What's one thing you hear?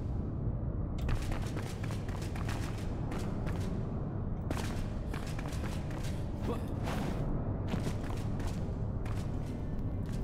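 Armoured footsteps clank quickly on a hard floor.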